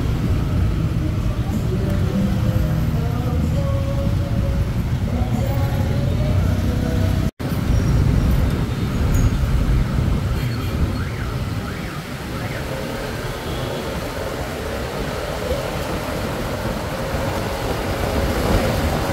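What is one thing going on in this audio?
Motorbike engines hum and rumble in busy traffic.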